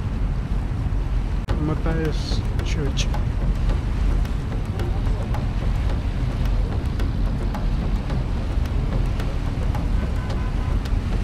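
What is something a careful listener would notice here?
A boat engine rumbles steadily outdoors.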